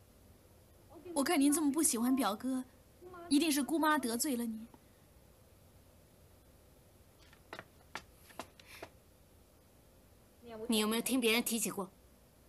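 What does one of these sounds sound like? A young woman answers softly and with emotion, close by.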